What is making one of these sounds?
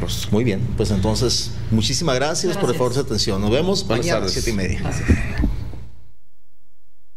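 Several men talk over each other with animation into microphones.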